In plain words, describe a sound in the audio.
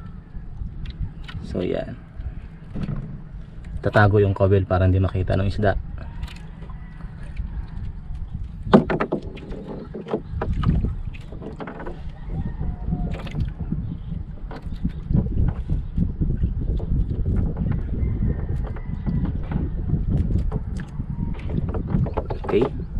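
Water laps gently against the side of a wooden boat.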